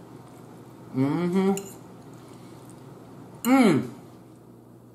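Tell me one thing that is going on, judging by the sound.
A woman hums with pleasure while eating.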